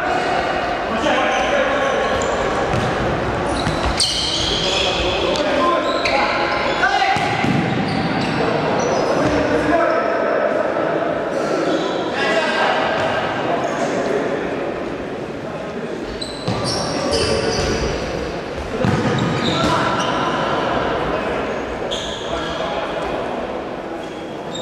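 A ball thuds as players kick it in an echoing hall.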